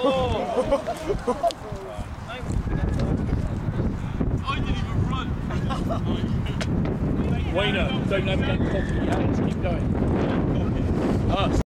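Young male players shout across an open field.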